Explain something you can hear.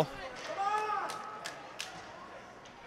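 Hockey sticks clack against a puck on ice, echoing in a large rink.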